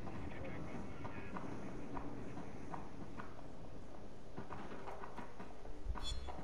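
Soft footsteps tread slowly on stairs.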